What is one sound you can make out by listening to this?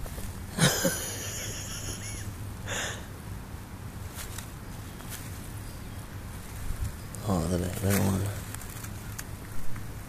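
Dry grass and leaves rustle and crackle as a hand digs through them.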